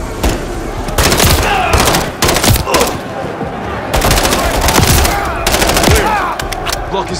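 A rifle fires shots in loud, sharp bursts.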